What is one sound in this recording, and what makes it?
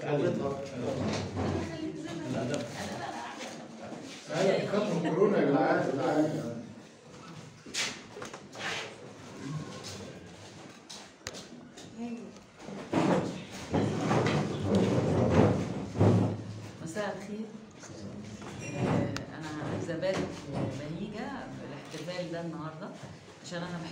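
Adult men and women talk together nearby, voices overlapping.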